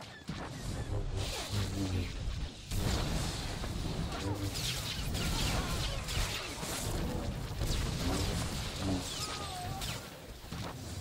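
Lightsabers clash and crackle in a fight.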